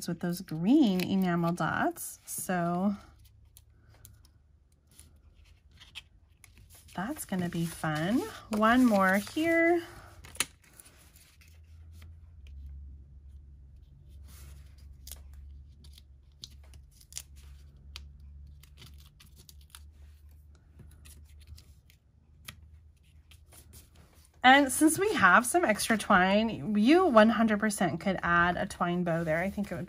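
Paper cards slide and tap softly on a table.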